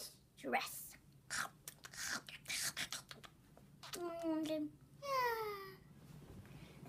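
A young boy makes loud whooshing and growling noises with his mouth.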